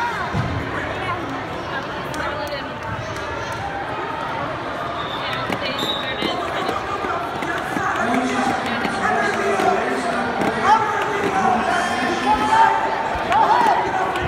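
Men and women in the crowd shout encouragement, growing louder toward the end.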